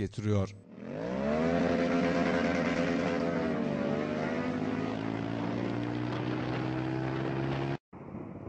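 A motorcycle engine drones and slowly rises in pitch.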